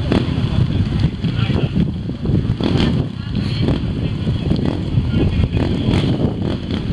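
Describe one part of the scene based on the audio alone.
A large outdoor crowd chatters and murmurs.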